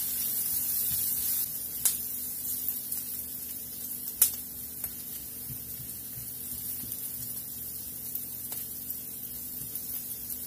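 A wooden spoon scrapes and knocks against a frying pan.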